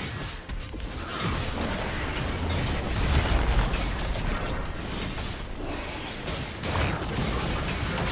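Magic spells blast and crackle in a busy fight.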